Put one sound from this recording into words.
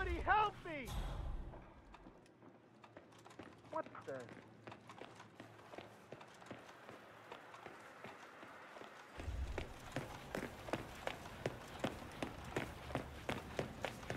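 Footsteps tap quickly and steadily on a hard floor.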